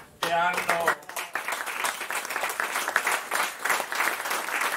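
An audience applauds warmly.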